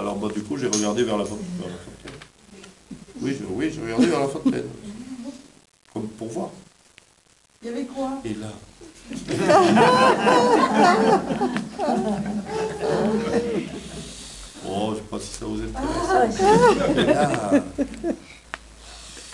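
A man speaks calmly and thoughtfully nearby.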